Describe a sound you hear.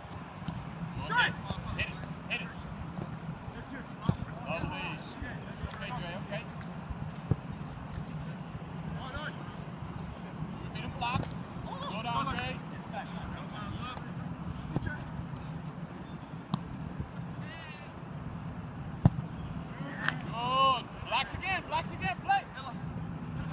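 Young men shout and call out across an open field.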